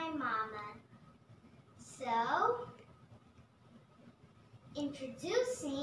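A young girl speaks brightly in short phrases, close by.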